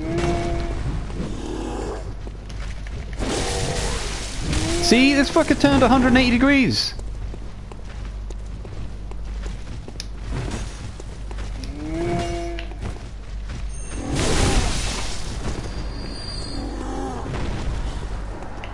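Monsters growl and roar loudly.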